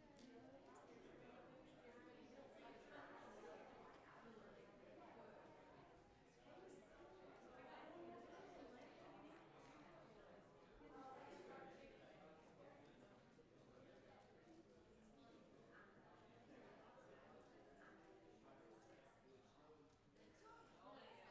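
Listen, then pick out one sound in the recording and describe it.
Men and women chatter quietly in an echoing room.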